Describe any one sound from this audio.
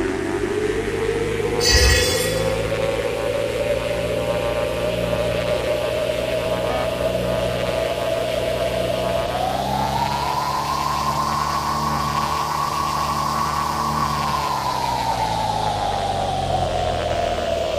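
A propeller plane engine drones steadily, rising in pitch and then falling back.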